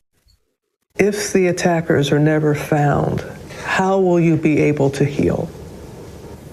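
A woman speaks calmly, heard close through a microphone.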